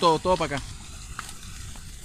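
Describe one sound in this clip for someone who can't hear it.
Water gushes and runs over the ground.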